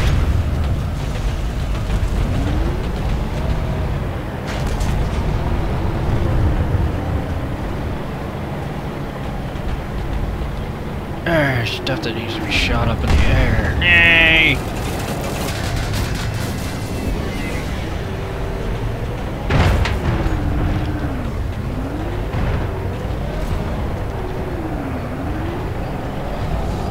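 A helicopter engine rumbles steadily.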